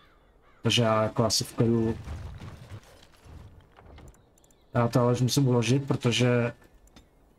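A man speaks into a close microphone in a deep, drawn-out voice.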